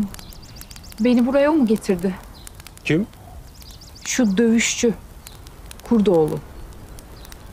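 An elderly man speaks calmly in a low voice.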